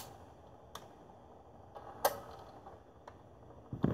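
A record player's needle drops onto a spinning record with a soft thud.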